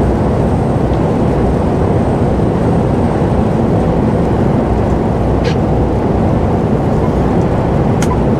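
A truck engine hums steadily inside the cab at highway speed.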